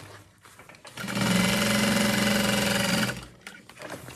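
A sewing machine whirs steadily.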